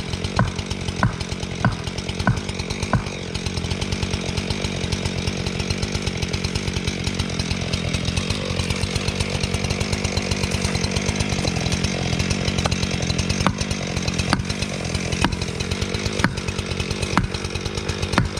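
A chainsaw engine roars steadily.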